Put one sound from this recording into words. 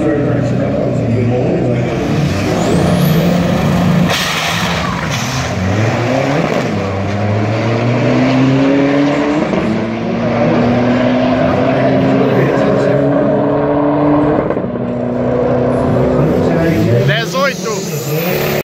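A car engine revs hard and roars as it launches and speeds away.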